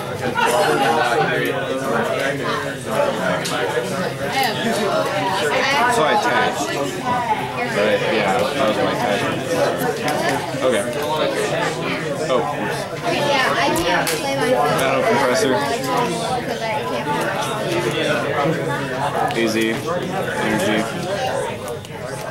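Playing cards rustle and shuffle between hands.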